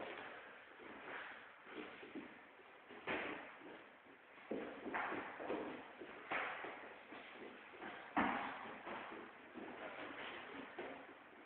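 Feet shuffle and thud on a wooden floor.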